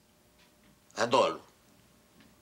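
A middle-aged man speaks briefly in a low voice.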